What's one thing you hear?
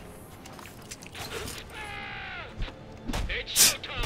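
A man shouts a question.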